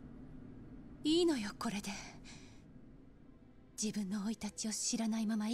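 A young woman speaks softly and sadly, close by.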